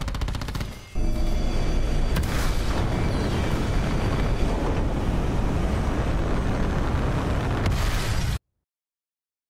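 A rocket engine roars with a deep, steady rumble.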